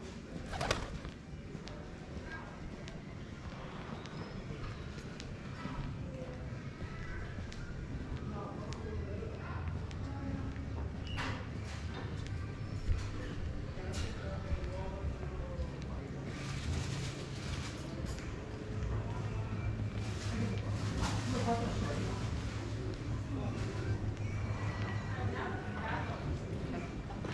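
Footsteps walk on stone paving.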